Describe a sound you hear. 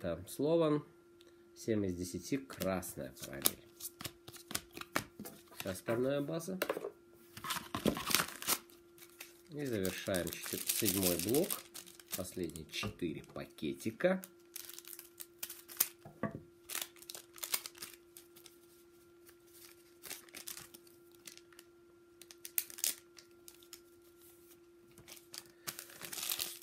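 Cards and foil wrappers rustle and crinkle in hands.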